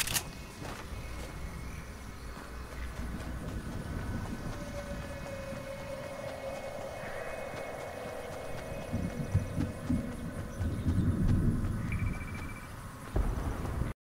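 Footsteps thud steadily on grass as a game character runs.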